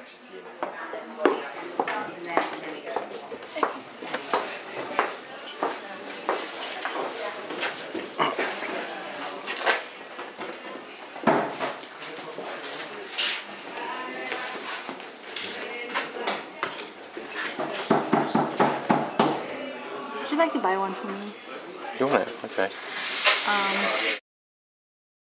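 People chatter and talk in an echoing room.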